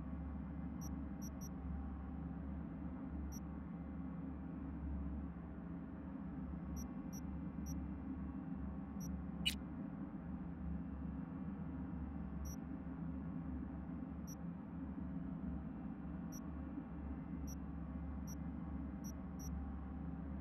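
Soft, high menu clicks tick now and then as selections change.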